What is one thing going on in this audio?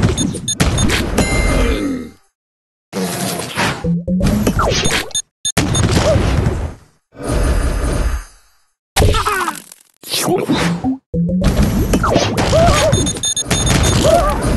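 Puzzle pieces burst with bright popping sound effects.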